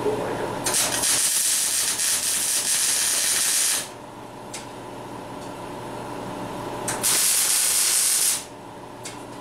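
A welding arc crackles and hisses in loud bursts.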